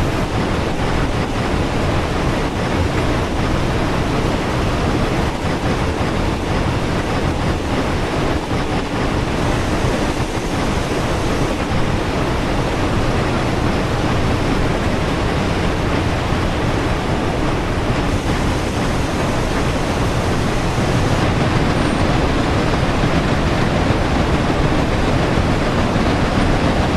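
A steam locomotive rumbles and clatters steadily along the track.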